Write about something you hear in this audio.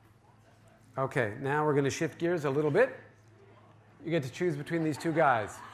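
A middle-aged man lectures calmly through a microphone.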